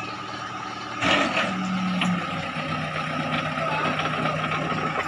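The diesel engine of a backhoe loader runs.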